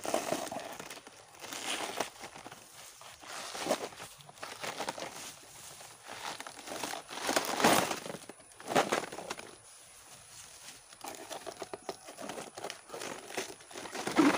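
Fibrous plant layers tear and rip as they are peeled apart by hand.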